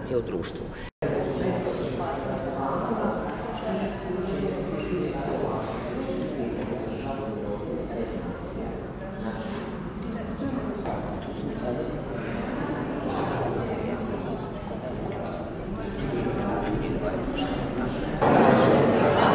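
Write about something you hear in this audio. Several people chat in a room.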